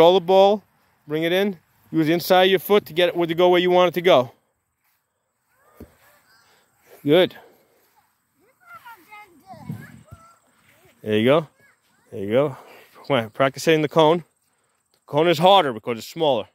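A ball thuds as a boy kicks it on grass.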